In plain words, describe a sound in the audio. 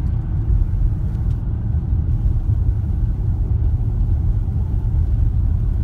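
A car engine hums low and steady with road rumble from inside the car.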